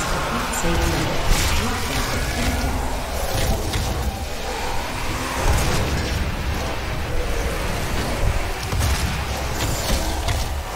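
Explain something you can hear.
A man talks into a headset microphone with animation.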